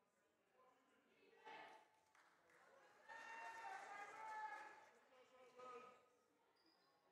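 Several young women chatter in a large echoing hall.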